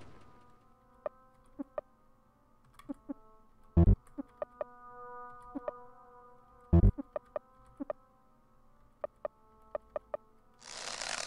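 Short electronic blips sound as menu choices are made.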